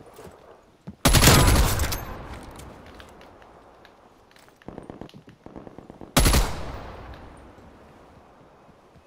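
Gunshots fire in short rapid bursts, each ending in a loud booming echo.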